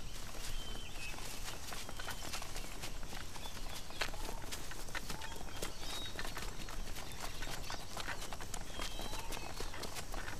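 Many footsteps crunch steadily on a dirt path outdoors.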